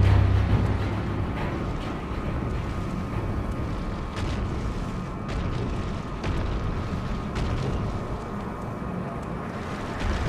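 A magical aura hums and shimmers steadily.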